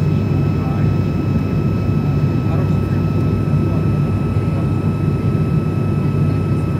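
An aircraft engine drones steadily inside the cabin.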